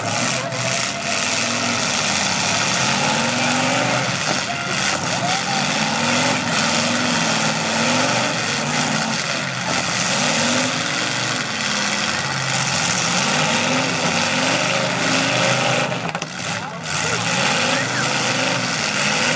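Engines roar and rev loudly as cars crash together.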